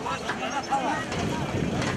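A large crowd of men talks and murmurs outdoors.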